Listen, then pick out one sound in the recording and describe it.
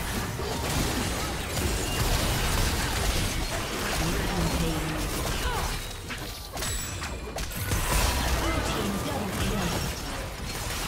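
Spell effects and weapon hits crackle and boom in a fast game battle.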